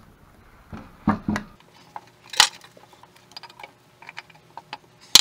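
Metal clinks and knocks against metal.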